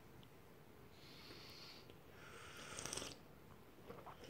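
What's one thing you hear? A woman and a man slurp tea from small cups.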